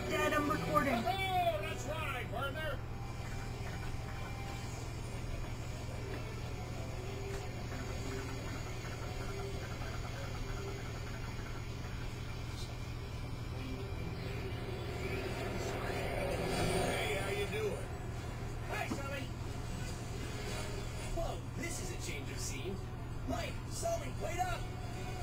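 Video game music and effects play from a television loudspeaker.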